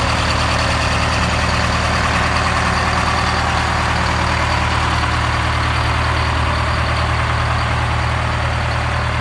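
A large diesel engine idles with a steady, deep rumble and clatter close by.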